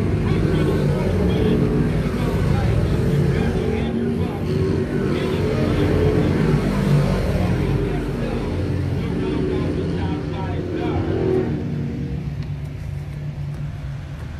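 Race car engines roar loudly as cars speed around a dirt track.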